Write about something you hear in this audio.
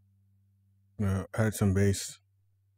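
A man speaks briefly and closely into a microphone.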